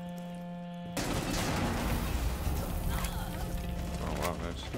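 An explosion bursts with a heavy boom.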